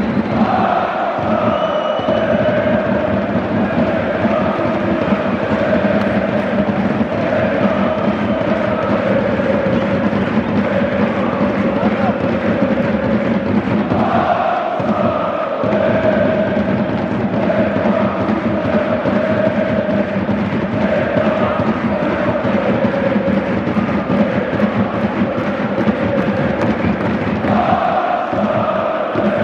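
A large stadium crowd chants loudly in unison, echoing around the stands.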